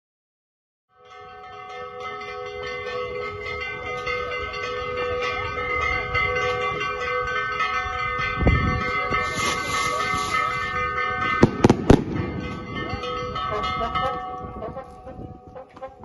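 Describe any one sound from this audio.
A drum beats along with the band.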